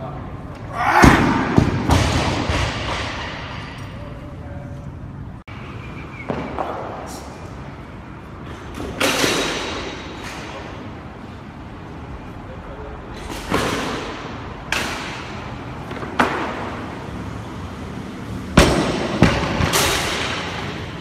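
A heavy barbell crashes onto the floor and the plates rattle.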